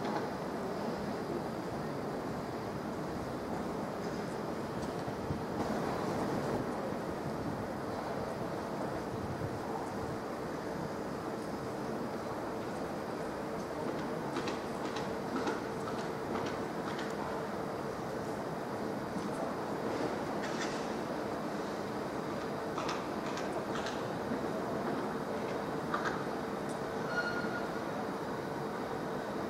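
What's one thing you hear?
A train rumbles steadily along the tracks as it approaches.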